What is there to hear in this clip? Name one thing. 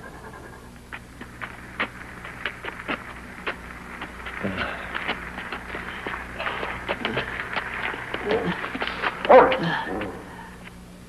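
Men shuffle and scrape while pushing a car.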